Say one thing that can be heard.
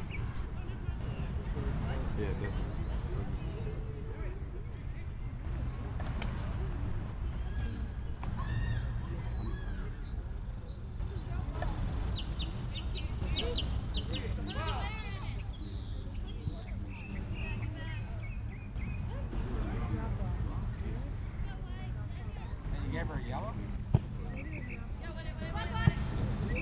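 Young players shout to each other far off.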